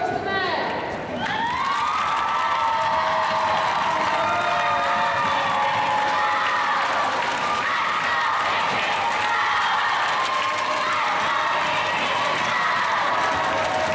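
A crowd of girls cheers and screams in an echoing hall.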